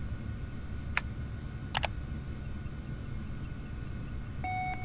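Short electronic menu clicks sound, then a quick run of high ticking beeps.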